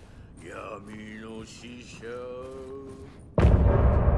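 Footsteps fall softly on carpet.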